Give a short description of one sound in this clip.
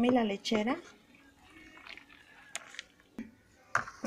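A thick liquid pours and splashes softly into a bowl.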